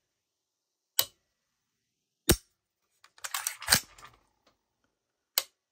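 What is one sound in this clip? An AR-15 trigger clicks sharply as it is dry-fired.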